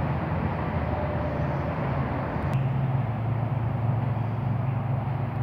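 Traffic hums steadily nearby.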